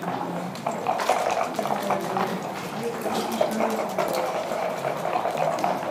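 Plastic game pieces click and slide on a board.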